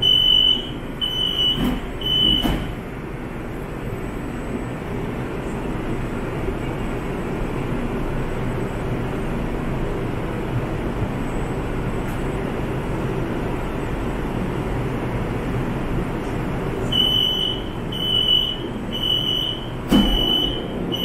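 A train's motor hums steadily at a standstill.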